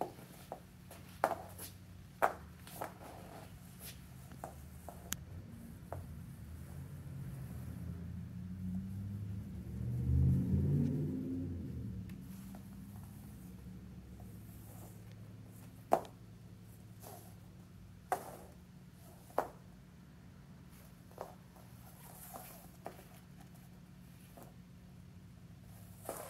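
A small puppy's paws patter softly on a padded floor.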